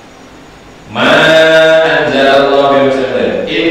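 A middle-aged man chants loudly and melodically into a microphone.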